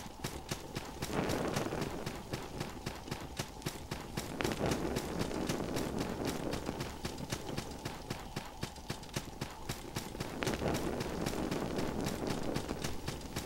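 Footsteps tap quickly and steadily on stone.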